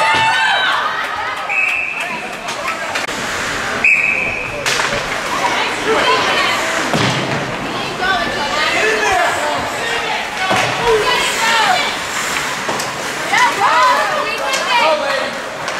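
Spectators shout and cheer in a large echoing rink.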